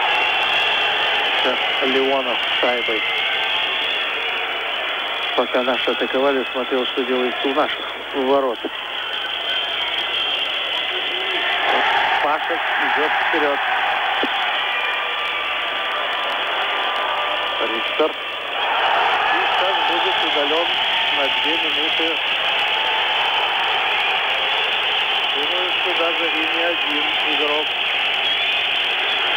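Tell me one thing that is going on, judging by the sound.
A large crowd roars and cheers in an ice arena.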